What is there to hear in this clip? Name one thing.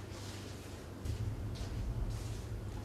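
A man sits down on a creaking wicker chair.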